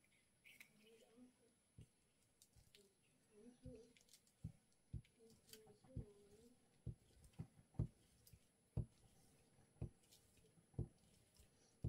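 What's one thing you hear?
A glue stick rubs and taps against paper on a table.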